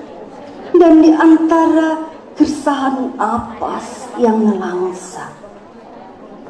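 A woman reads out loud into a microphone, heard through loudspeakers in a large room.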